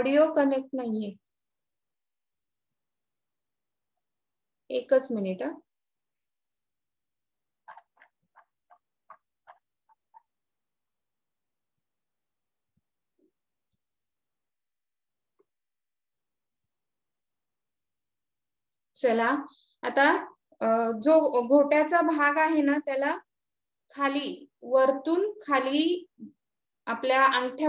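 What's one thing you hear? A woman speaks calmly close by, explaining.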